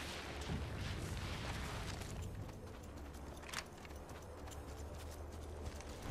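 Quick footsteps run over gravel.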